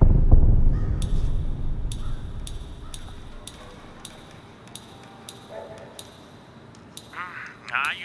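Menu selection clicks tick in a quick, even series.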